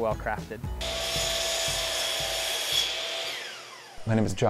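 A power saw whines loudly and then winds down.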